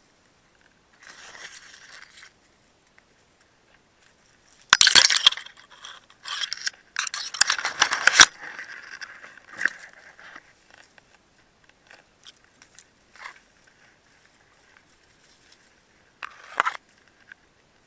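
Leaves and bamboo stalks rustle and crackle close by.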